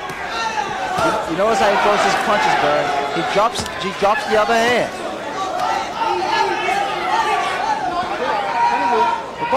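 Boxing gloves thud against a body.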